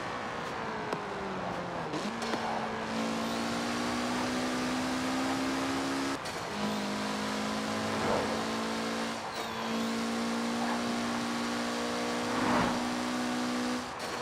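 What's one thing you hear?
A sports car engine revs hard, shifting gears as it speeds up.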